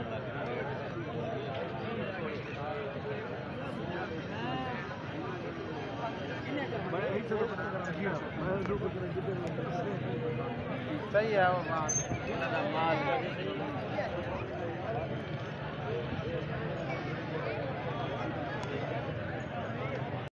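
A crowd of men talks and calls out all around, close by.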